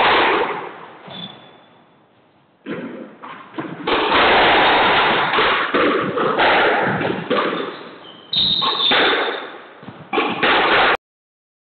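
A squash ball smacks against the walls with sharp, echoing cracks.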